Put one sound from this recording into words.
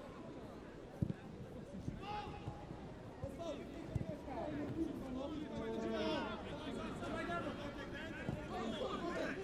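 A football is kicked with dull thuds.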